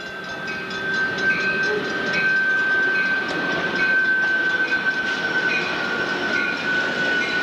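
A train rumbles past nearby.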